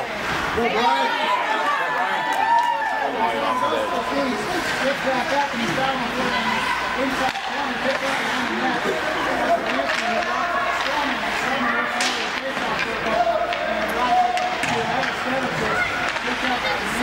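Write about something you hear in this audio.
A crowd of spectators chatters nearby in a large echoing rink.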